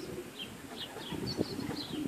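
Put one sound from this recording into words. Pigeons flap their wings as they fly overhead.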